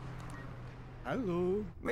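An older man speaks anxiously into a phone.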